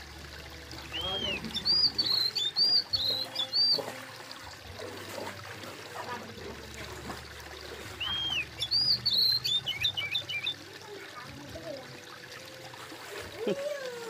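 Fish flap and splash in shallow water.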